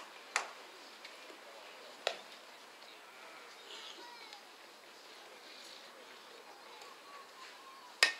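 Young women call out and chatter faintly in the distance outdoors.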